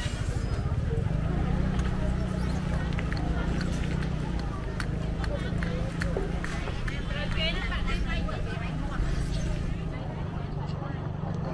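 People murmur and chatter at a distance outdoors.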